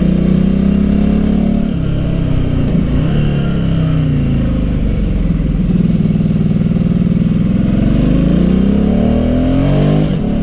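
A motorcycle engine revs up and down as it rides close by.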